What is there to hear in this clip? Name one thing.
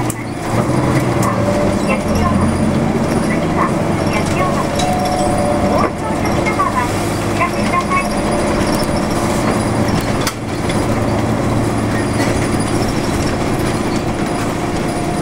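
A car engine hums steadily with road noise as the car drives along.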